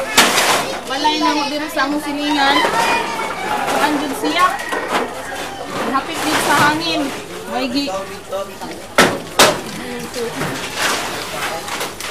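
Women talk with animation nearby, outdoors.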